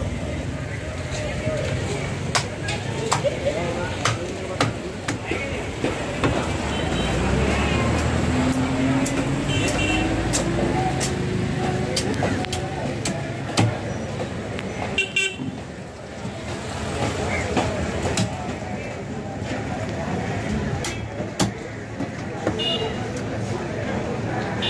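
A knife chops and scrapes through fish on a wooden block.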